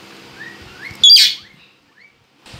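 A rose-ringed parakeet gives a shrill screech.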